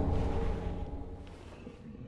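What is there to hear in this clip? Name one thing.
A heavy blow lands with a loud crash.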